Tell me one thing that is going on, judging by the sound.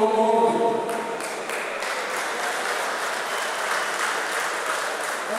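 A crowd of men applauds in a large echoing hall.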